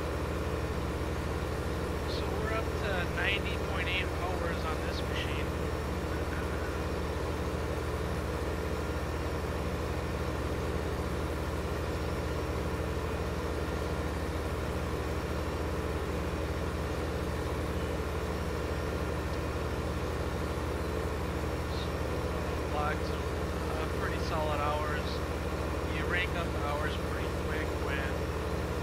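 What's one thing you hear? A tractor engine drones steadily with a low hum.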